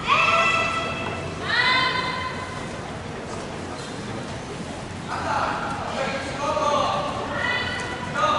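A group of young people shout loud, drawn-out calls in a large echoing hall.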